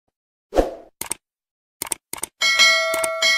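A mouse button clicks several times.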